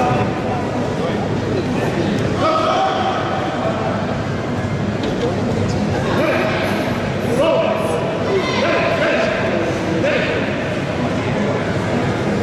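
A crowd of spectators shouts encouragement loudly in an echoing hall.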